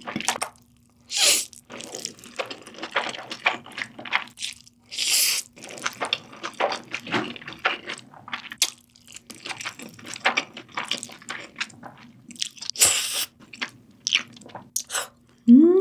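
A young woman chews wet food with soft smacking sounds, close to the microphone.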